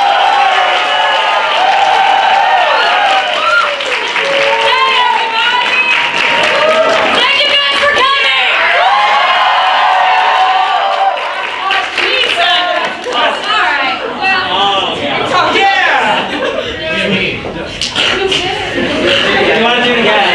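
A group of young people sing together close by.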